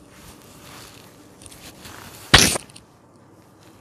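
Cloth rustles and swishes close by.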